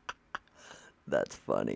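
A man speaks close to a microphone.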